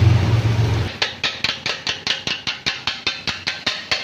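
A metal cup chops rapidly against a hot griddle with sharp, rhythmic clanks.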